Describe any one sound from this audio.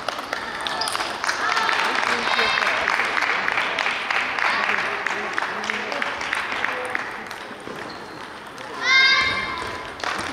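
Ping-pong balls click on tables and paddles in a large echoing hall.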